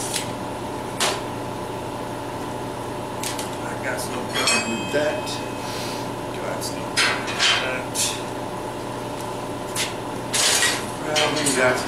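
Metal rods clank and knock against a steel frame.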